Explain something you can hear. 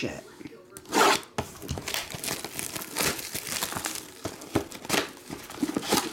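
Plastic wrapping crinkles and rustles as it is pulled off.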